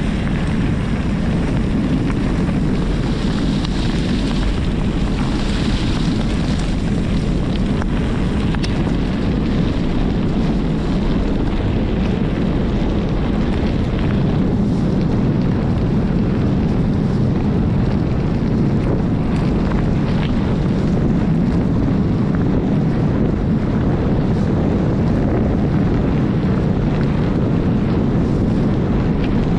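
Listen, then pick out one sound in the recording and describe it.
Footsteps crunch on a gravel path strewn with dry leaves.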